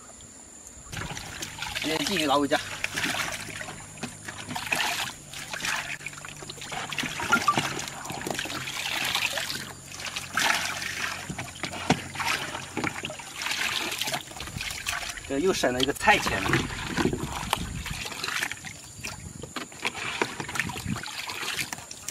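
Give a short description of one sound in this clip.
Water splashes as a basket is dipped and swished in a tank.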